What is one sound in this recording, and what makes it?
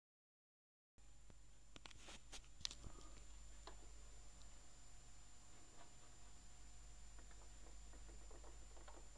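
A vinyl record spins on a turntable with soft crackle and hum.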